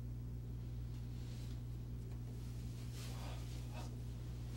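A man shifts in his seat, his clothes rustling softly.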